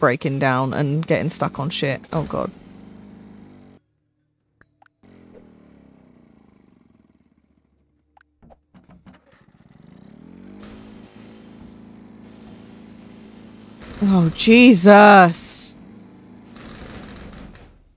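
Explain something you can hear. A ride-on lawn mower engine hums steadily.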